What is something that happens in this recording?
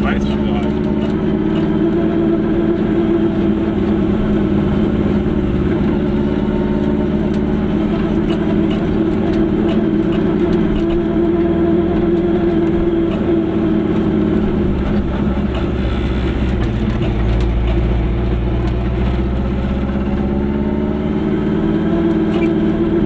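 Tyres rumble on a paved road.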